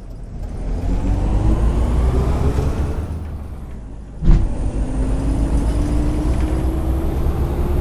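A bus engine drones steadily and rises slowly in pitch as it speeds up.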